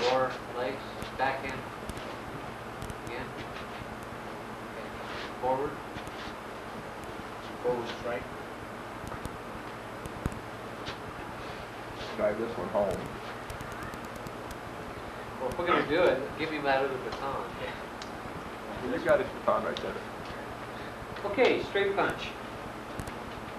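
A man speaks calmly, explaining, in a room that echoes a little.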